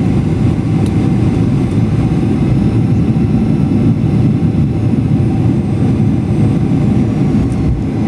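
Airplane wheels rumble on the runway after touchdown.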